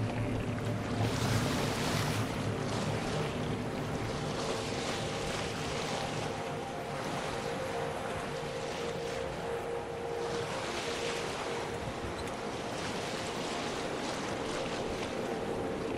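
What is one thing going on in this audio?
Waves wash and splash against a sailing boat's hull.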